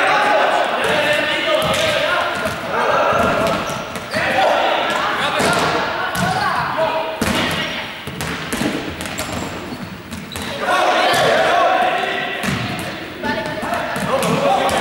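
A group of young people shout and cheer with excitement in a large echoing gym.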